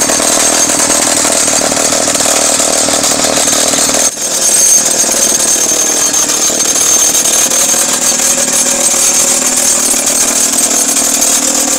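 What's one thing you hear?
A jackhammer hammers loudly and rapidly into rock, close by.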